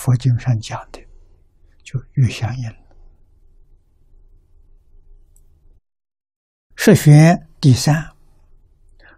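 An elderly man speaks slowly and calmly into a close microphone, with long pauses.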